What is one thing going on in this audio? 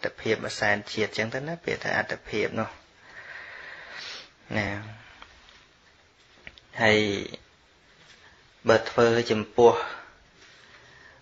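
A man speaks calmly and steadily, close to a microphone, with pauses.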